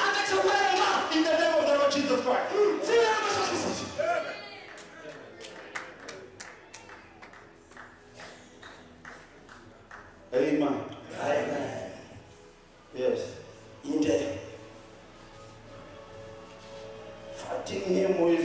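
A man prays loudly and fervently through a microphone in an echoing hall.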